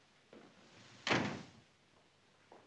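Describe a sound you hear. A door slams shut.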